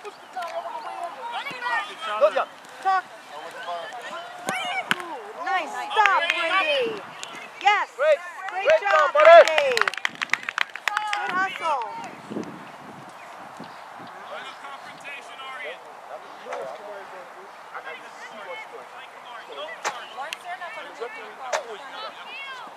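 Young boys shout and call out across an open outdoor field.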